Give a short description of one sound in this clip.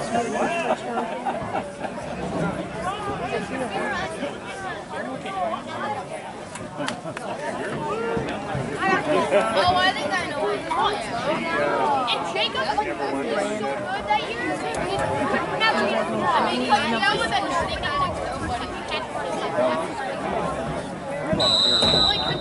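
A crowd of young players and adults chatters and shouts outdoors.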